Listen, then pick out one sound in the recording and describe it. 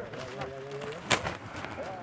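A large bird flaps its wings as it takes off.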